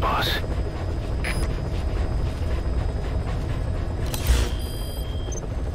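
A helicopter's rotors and engine drone steadily, heard from inside the cabin.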